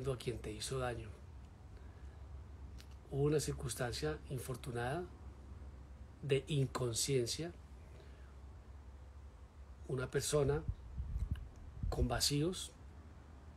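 A middle-aged man speaks calmly and close up, in short phrases with pauses.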